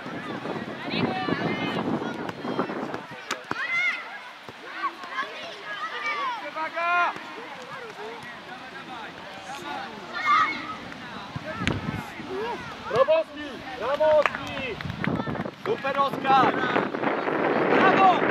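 Young players shout and call out across an open field.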